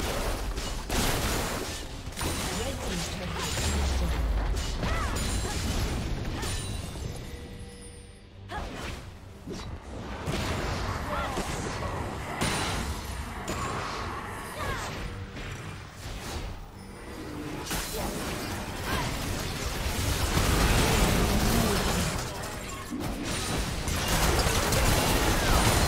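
Video game spell effects crackle and boom during a battle.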